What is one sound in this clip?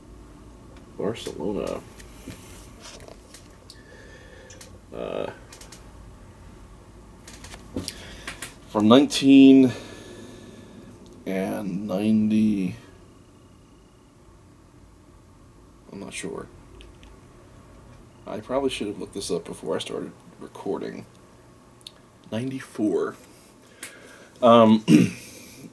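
A middle-aged man talks calmly and closely into a microphone, in short bursts with pauses.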